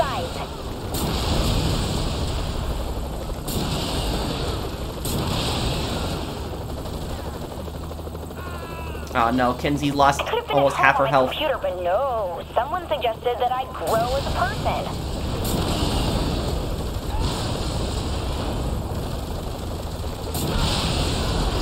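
A rocket launcher fires with sharp bangs.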